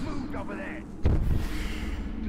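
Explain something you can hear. A heavy thud sounds as something lands.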